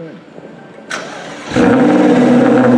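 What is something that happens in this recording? A sports car's engine starts with a sudden loud roar.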